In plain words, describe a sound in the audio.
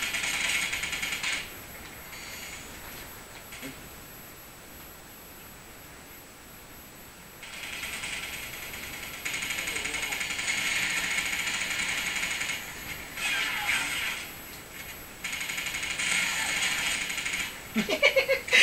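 Rapid gunfire rattles from a video game through a television speaker.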